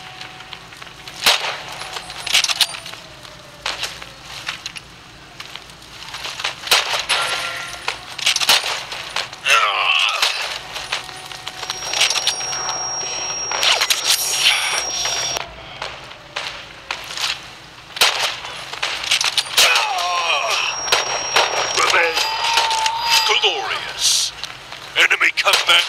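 Gunshots fire in sharp bursts, with ringing echoes.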